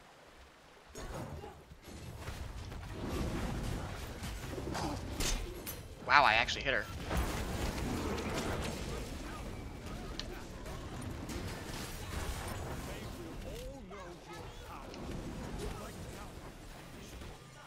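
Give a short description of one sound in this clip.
Game spell effects whoosh and crash in a frantic battle.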